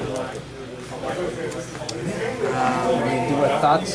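Playing cards riffle as a deck is shuffled.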